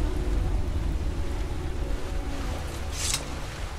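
A waterfall rushes and roars nearby.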